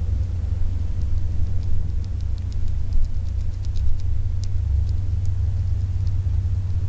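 A horse's hooves thud on grass at a canter.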